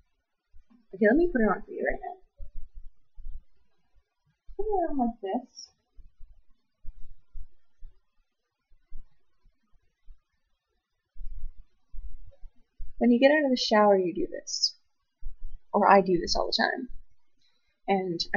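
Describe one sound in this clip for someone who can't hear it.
A young woman talks close by, casually.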